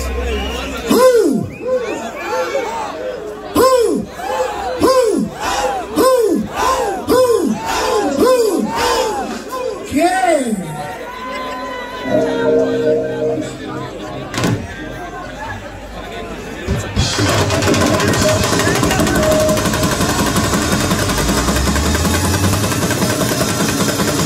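Large drums are beaten in a fast rhythm.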